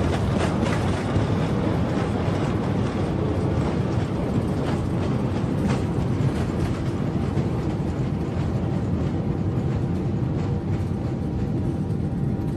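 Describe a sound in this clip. Landing gear wheels rumble and thump over a runway.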